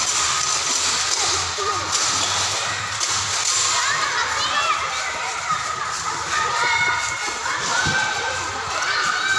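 Young children shout and squeal excitedly nearby.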